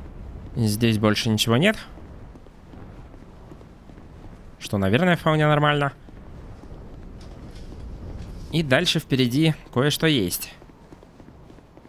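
Footsteps run quickly across stone.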